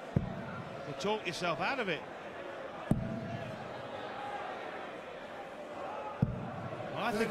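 Darts thud into a dartboard one after another.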